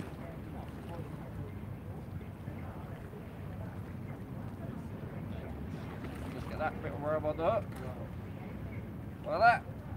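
A fishing reel clicks softly as line is wound in.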